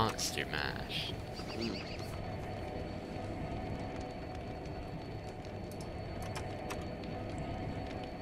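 Soft interface clicks sound as game menus open.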